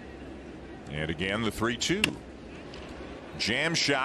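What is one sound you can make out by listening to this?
A bat cracks against a ball.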